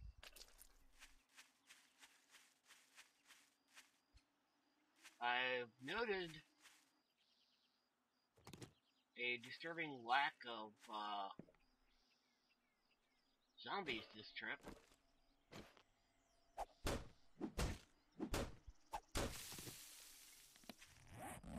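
Footsteps crunch through dry grass and leaves at a steady walking pace.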